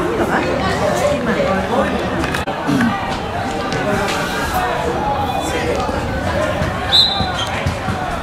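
Young men shout and call out across an outdoor pitch.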